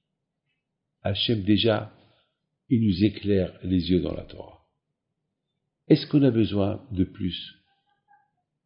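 An elderly man speaks calmly and close to a microphone, in short bursts with pauses.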